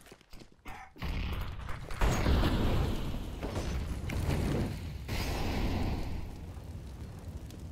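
A smoke grenade bursts and hisses.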